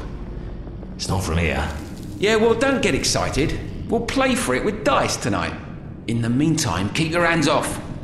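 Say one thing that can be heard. A second man answers with a gruff voice.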